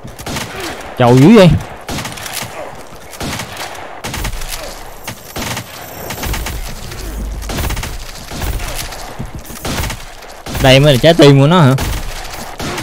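A young man speaks loudly and with animation into a microphone.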